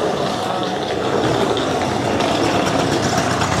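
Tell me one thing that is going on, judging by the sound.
A motor scooter rides past close by.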